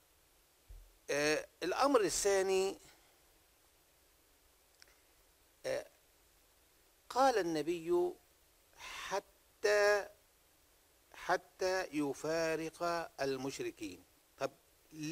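An elderly man speaks with animation into a microphone, in bursts with pauses.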